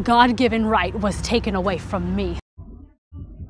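A woman speaks angrily and forcefully.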